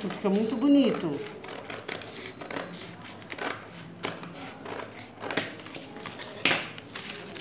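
Scissors snip and crunch through stiff paper.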